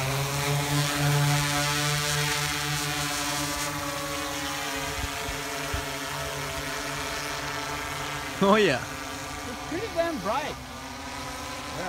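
A drone's rotors hum steadily overhead.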